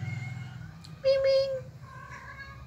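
A cat meows loudly close by.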